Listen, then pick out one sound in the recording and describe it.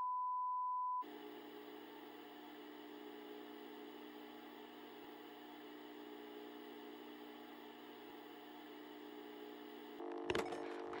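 A video tape hums and hisses steadily.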